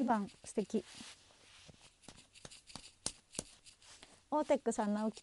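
Hands rub and tap close to the microphone.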